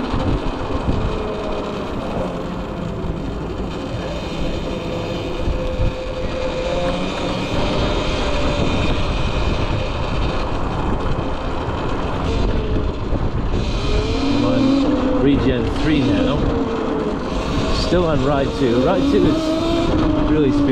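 An electric motorcycle motor whines, rising and falling in pitch.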